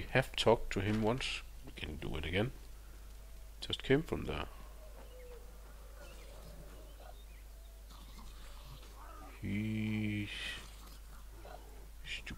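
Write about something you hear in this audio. Footsteps crunch and rustle through dry grass.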